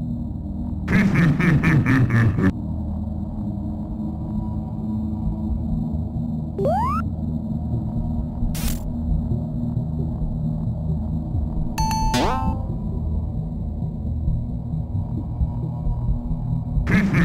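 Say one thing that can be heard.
Low, dark game music plays steadily.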